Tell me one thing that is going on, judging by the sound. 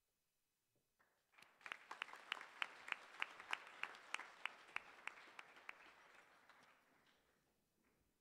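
An audience claps in rhythm in a large hall.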